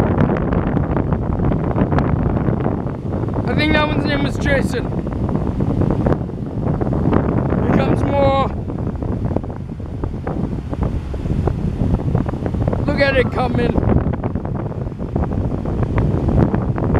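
Wind blows hard across the microphone.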